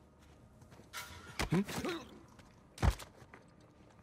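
Heavy blows and thuds land in a short scuffle.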